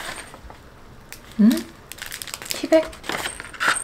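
A plastic packet crinkles in hands.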